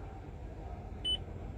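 A car stereo gives a short electronic beep as a button is pressed.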